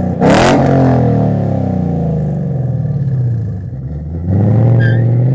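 A car engine starts with a loud roar and idles with a deep, throaty rumble.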